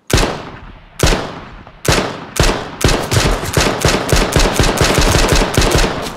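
A pistol fires single shots, then rapid shots that echo outdoors.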